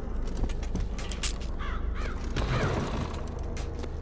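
A wooden door swings open with a creak.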